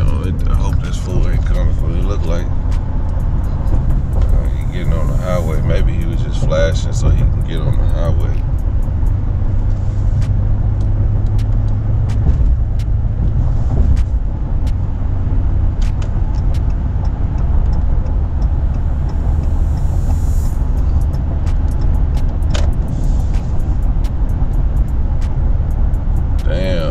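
A car engine and road noise rumble steadily from inside the car.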